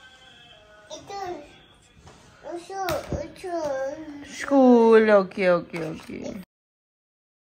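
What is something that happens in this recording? A little girl babbles in a small high voice.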